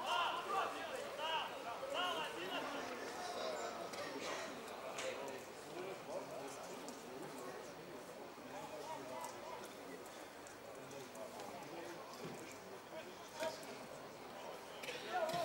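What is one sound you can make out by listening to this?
Men shout to one another across an open outdoor field.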